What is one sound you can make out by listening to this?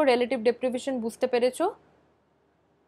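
A young woman speaks calmly into a microphone, heard as if through an online call.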